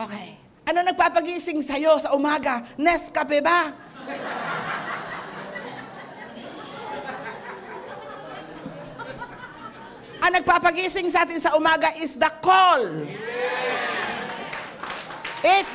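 An elderly woman preaches forcefully into a microphone.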